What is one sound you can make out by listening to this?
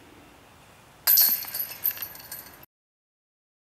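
A disc clangs into metal chains.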